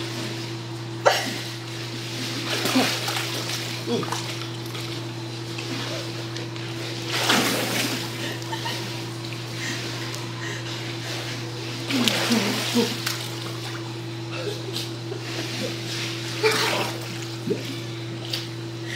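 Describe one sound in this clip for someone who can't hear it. Water splashes as a person moves through a pool.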